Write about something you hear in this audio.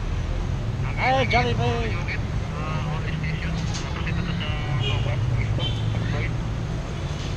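A middle-aged man talks close to the microphone.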